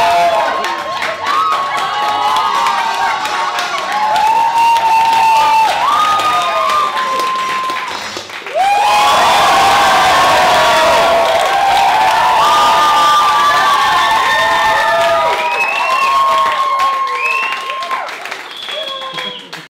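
A large audience cheers, whoops and shrieks loudly.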